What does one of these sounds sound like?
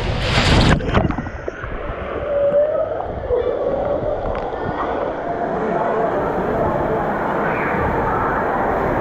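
Water flows steadily in a large echoing hall.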